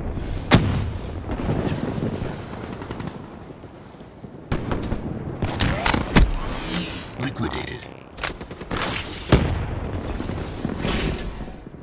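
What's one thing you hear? A mounted heavy gun fires in bursts.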